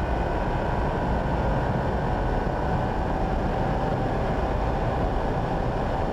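A car engine roars loudly from inside the cabin at high speed.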